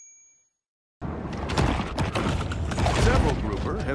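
Water rushes and swirls underwater as a shark swims.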